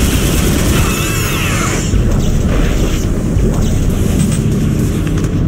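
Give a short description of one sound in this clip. A futuristic energy weapon fires sharp zapping shots.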